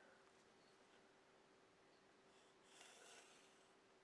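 A pencil scratches along paper.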